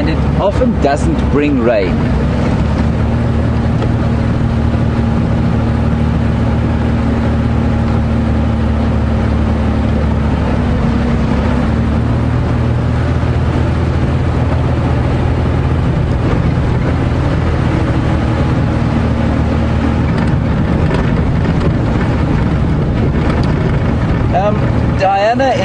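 A vehicle engine rumbles steadily throughout.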